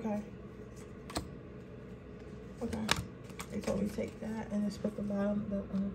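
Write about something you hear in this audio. A card is laid down on a table.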